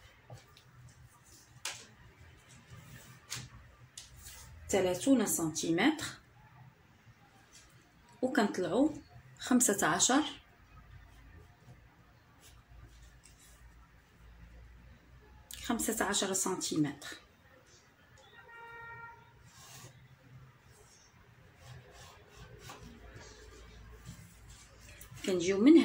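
Cloth rustles softly as hands smooth and move it.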